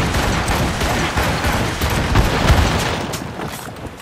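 Cannons boom again and again in a rumbling barrage.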